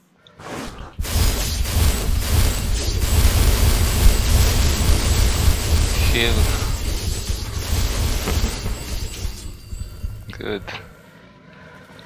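A magic spell roars and crackles loudly.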